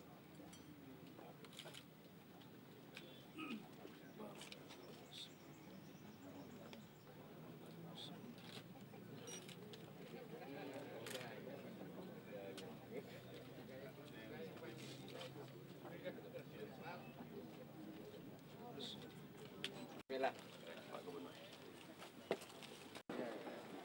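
A crowd of adult men murmurs and talks quietly nearby.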